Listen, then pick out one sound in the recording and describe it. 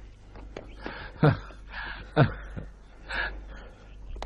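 A man sobs and breathes heavily, close by.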